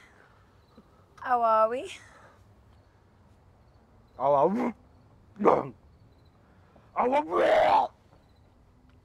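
Young women talk excitedly.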